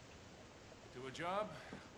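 A man raises a toast, close by.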